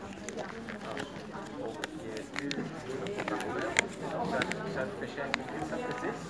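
Several adults chat quietly in an echoing hall.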